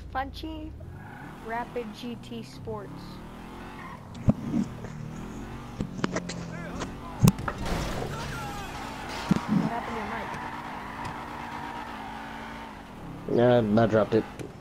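A sports car engine hums and revs as the car drives.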